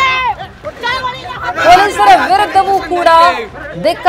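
Women shout and cry out in a scuffle.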